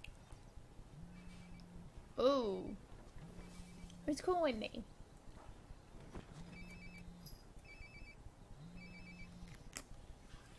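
A mobile phone rings in short repeated bursts.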